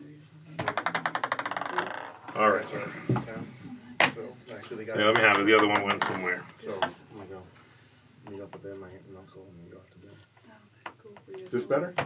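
A wooden paddle knocks a ball across a table with sharp clacks.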